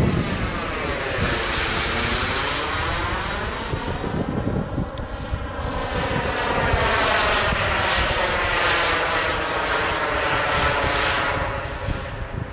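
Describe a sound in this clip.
A jet roars overhead, its pitch sweeping as it passes and then fading into the distance.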